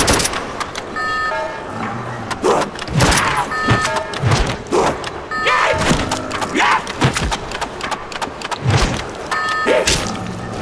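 Short electronic beeps chime several times.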